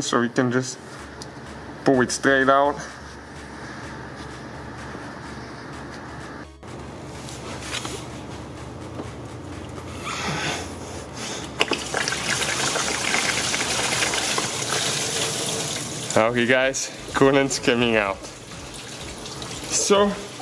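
Hands fiddle with hoses and metal parts under a car's bonnet.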